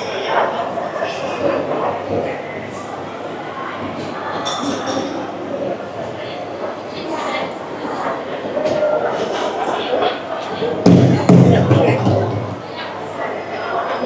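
Many people chatter all around in a large echoing hall.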